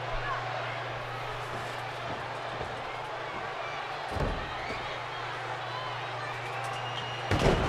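A large crowd cheers steadily in an echoing arena.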